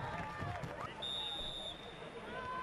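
A referee's whistle blows a short shrill blast.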